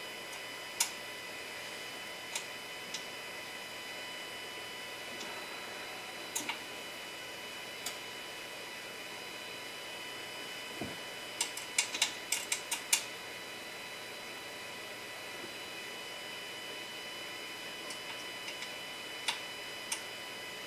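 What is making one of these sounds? Small plastic parts click and tap.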